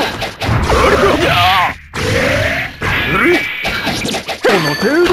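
Fighting game hits land with sharp, punchy impacts.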